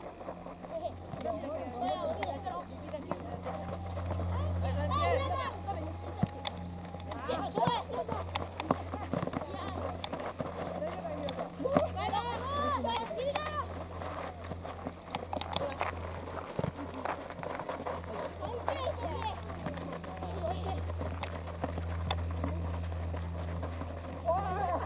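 Young boys shout and call out to each other across an open field.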